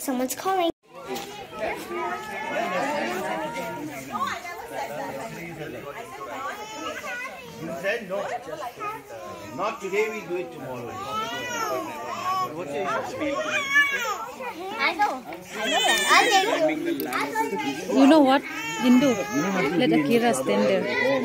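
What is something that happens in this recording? A crowd of adults and children chatters and calls out outdoors.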